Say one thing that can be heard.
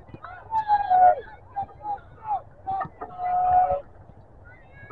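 People shout from across an open field, calling out loudly.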